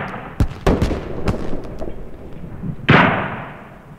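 A rifle fires several sharp shots close by.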